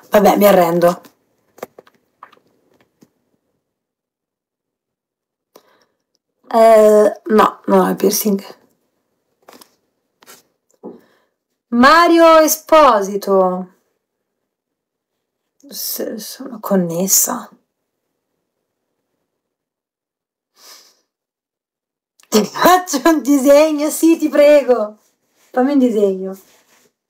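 A young woman speaks close to a microphone in short bursts.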